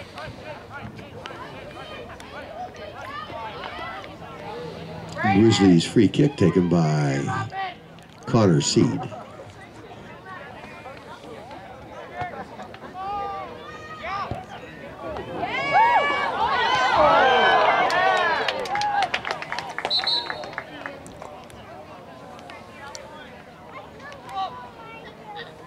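Players call out to each other across an open field.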